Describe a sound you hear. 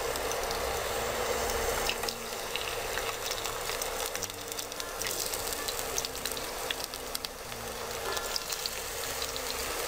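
Slices drop into hot oil with a splash.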